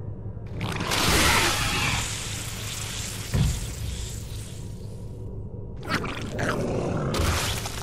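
Game sound effects whoosh and hum.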